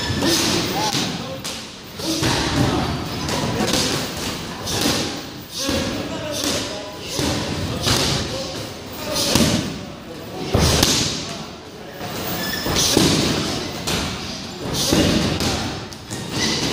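Gloved punches and kicks thud against padded mitts, in quick bursts.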